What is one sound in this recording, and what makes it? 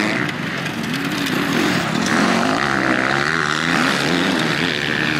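Dirt bike engines rev loudly and whine as the bikes race past.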